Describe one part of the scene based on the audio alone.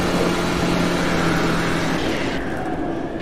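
A quad bike engine hums steadily as it drives.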